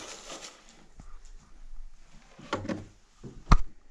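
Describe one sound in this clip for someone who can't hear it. An old suitcase lid thumps shut.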